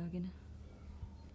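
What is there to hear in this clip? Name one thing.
A young woman speaks briefly and calmly close by.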